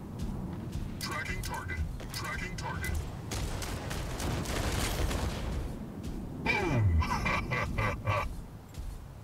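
Guns fire in rapid, rattling bursts.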